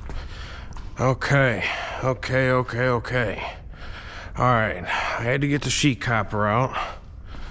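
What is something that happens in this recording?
A man talks calmly, close to the microphone.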